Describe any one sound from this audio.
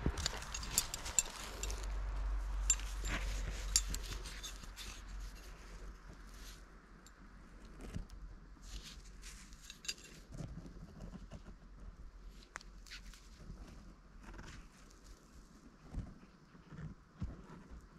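A gloved hand handles a small metal ring, with faint scrapes and clicks.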